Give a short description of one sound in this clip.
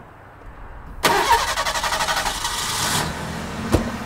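A car engine cranks and turns over.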